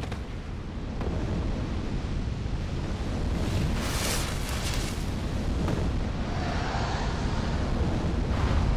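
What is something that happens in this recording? Fire roars and crackles nearby.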